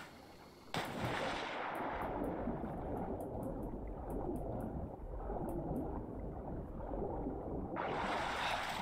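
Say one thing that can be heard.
Sound turns dull and muffled underwater, with bubbling.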